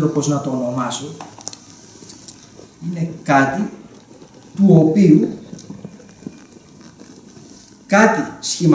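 A middle-aged man speaks calmly in short bursts, close by.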